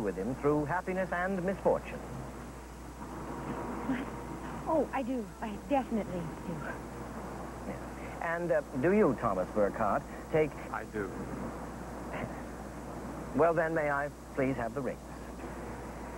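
An elderly man speaks slowly and solemnly, close by.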